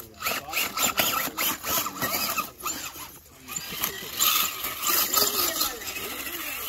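An electric radio-controlled crawler whirs as it climbs over rocks.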